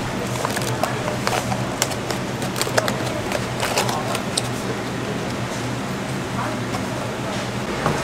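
Cardboard rustles and creaks as a box is folded shut.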